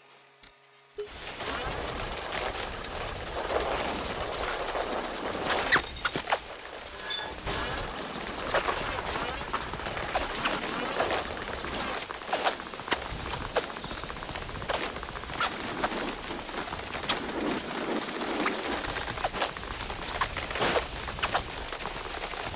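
Footsteps crunch over gravel and rock at a brisk pace.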